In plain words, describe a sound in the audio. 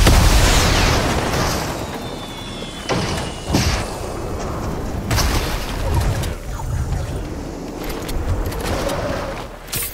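Wooden walls crash and shatter as they break apart.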